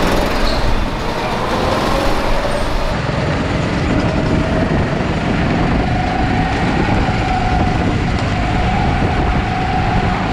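Go-kart engines whine and rev as the karts race around a track.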